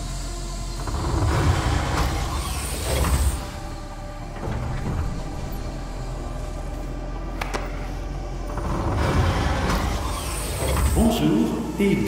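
A heavy metal door grinds and scrapes as it is forced open.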